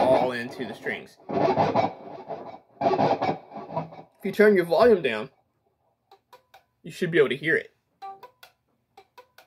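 An electric guitar plays bending lead notes up close.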